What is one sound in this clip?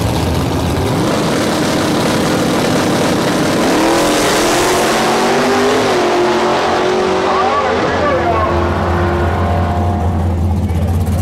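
A race car's engine roars loudly and rises in pitch as the car speeds away.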